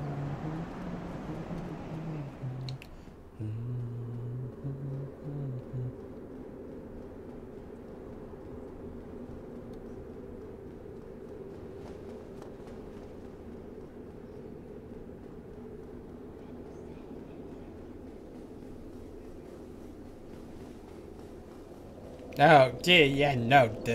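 Footsteps run quickly on a stone floor.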